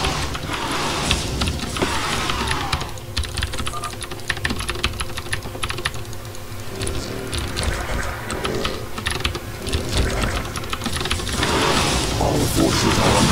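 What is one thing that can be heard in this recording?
A computer mouse and keyboard click rapidly.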